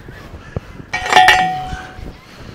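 A post driver clangs loudly against a metal fence post.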